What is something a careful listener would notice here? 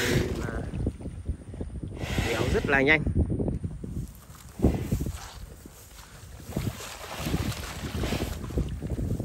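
A water buffalo shifts and sloshes in a muddy wallow.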